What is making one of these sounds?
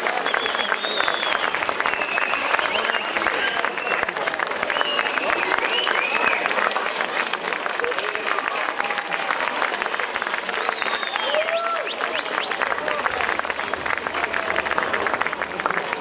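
A group of women sing together on a stage.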